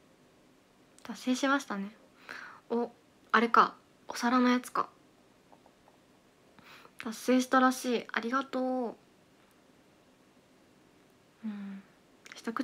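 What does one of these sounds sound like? A young woman talks casually and close to the microphone, in short bursts.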